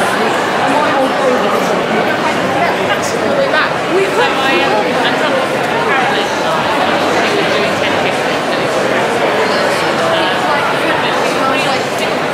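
A crowd chatters throughout in a busy hall.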